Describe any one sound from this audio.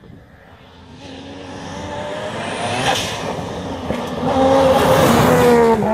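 Another rally car engine approaches, growing louder as it revs hard.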